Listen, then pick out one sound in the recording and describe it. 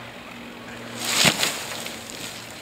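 A tree crashes to the ground with a thud.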